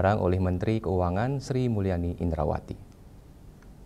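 A man reads out calmly through a microphone.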